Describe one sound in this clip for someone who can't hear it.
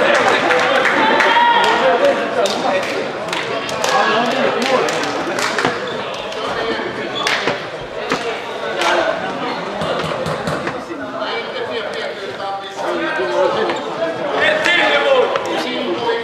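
Shoes squeak and thud on a hard floor in a large echoing hall.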